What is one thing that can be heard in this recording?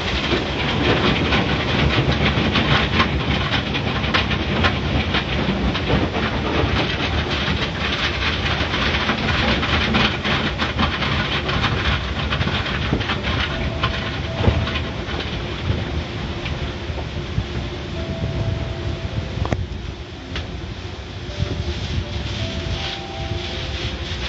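Water sprays and splashes hard against a car's windscreen.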